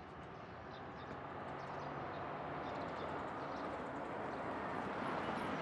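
A car drives slowly closer, its engine and tyres growing louder.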